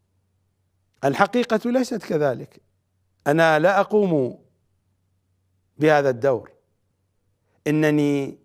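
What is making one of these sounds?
A middle-aged man speaks forcefully into a close microphone, in bursts with pauses.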